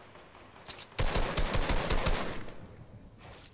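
A gun fires in a rapid burst of shots.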